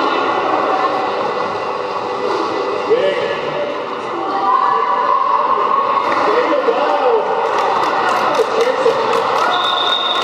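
A crowd of people shout and call out in a large echoing hall.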